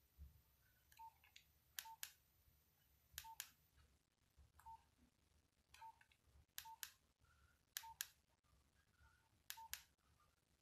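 A phone beeps softly with each key press.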